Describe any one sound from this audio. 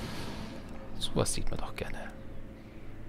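A menu opens with a soft swish of interface sounds.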